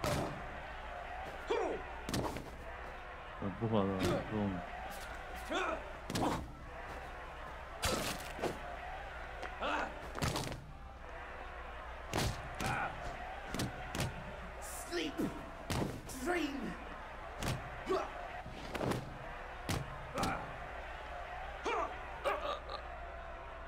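Blows land with dull thuds.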